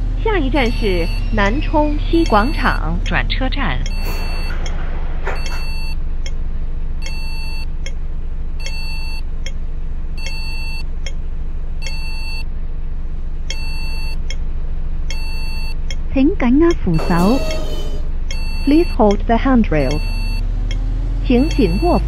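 A bus turn signal clicks in an even rhythm.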